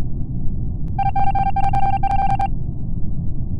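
A quick electronic jingle plays.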